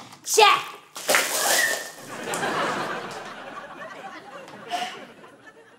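A young woman shrieks loudly.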